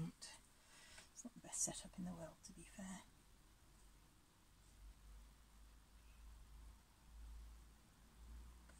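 A paintbrush dabs and brushes softly on canvas.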